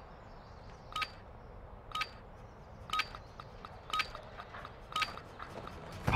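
An electronic countdown beeps once a second.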